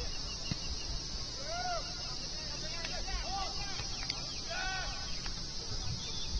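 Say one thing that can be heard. Players call out faintly across an open pitch outdoors.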